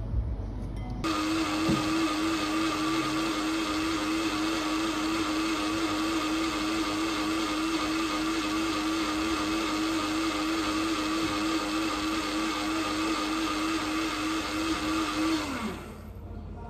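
An espresso machine hums steadily.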